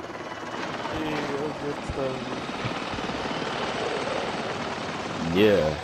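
A helicopter's rotors thump loudly overhead.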